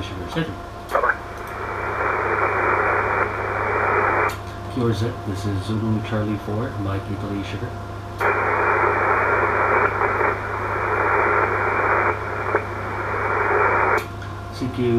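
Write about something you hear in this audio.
A radio receiver hisses with loud static.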